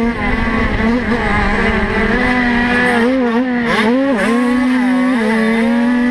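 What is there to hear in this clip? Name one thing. A dirt bike engine roars loudly close by, its pitch rising and falling as the rider works the throttle.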